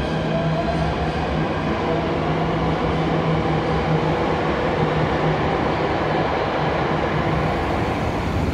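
A train rumbles past along the platform.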